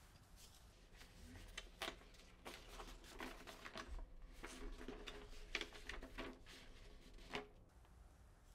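Paper rustles and crinkles as a letter is unfolded.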